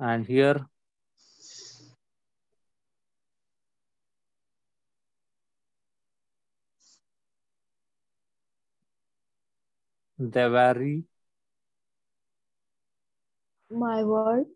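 A man speaks calmly in short phrases, with long pauses, close to a microphone.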